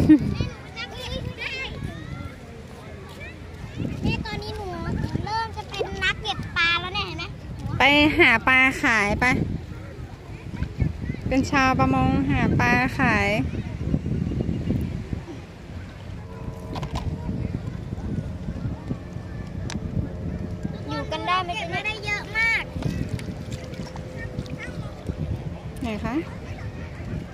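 Young girls talk and exclaim excitedly nearby.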